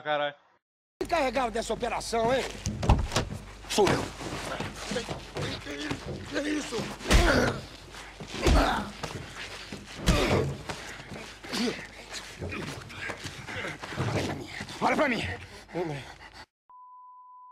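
A man shouts and grunts angrily up close.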